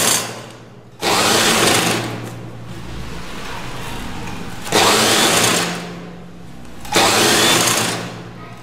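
A sewing machine stitches through fabric in short runs.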